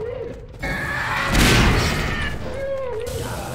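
An explosion booms with a deep roar.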